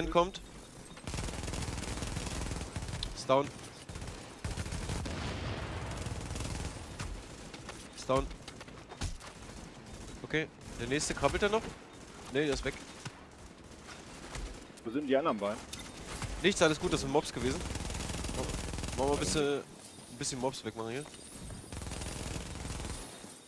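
Rapid gunfire rattles in a video game.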